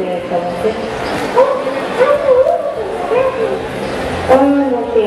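A young woman sings through loudspeakers.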